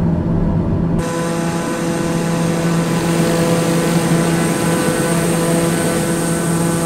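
A propeller engine whines and hisses steadily.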